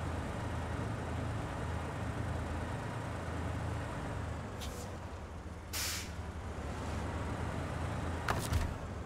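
A heavy truck engine rumbles steadily, low and deep.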